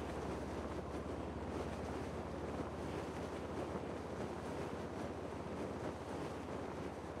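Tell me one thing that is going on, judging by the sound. Wind rushes steadily past a parachute gliding through the air.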